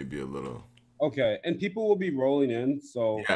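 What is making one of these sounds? A young man speaks over an online call.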